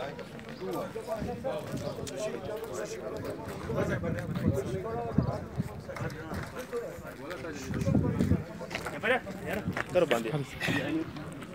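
Several men talk at once outdoors, close by.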